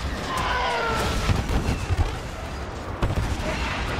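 Laser blasts fire in rapid bursts.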